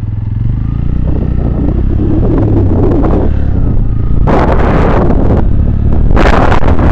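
A motorcycle engine rumbles steadily up close.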